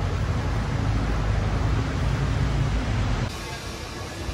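A car drives past on a wet street, its tyres hissing.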